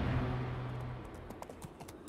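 Rows of soldiers march in step.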